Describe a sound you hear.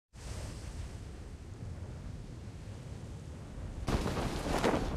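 Wind rushes steadily past.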